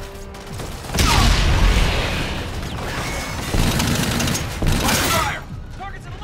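Automatic gunfire bursts loudly in short rapid volleys.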